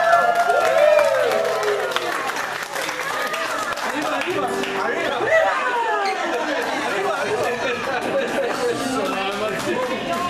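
Men laugh heartily close by.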